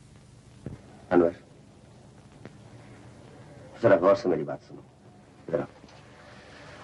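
A man speaks warmly in short phrases, close by.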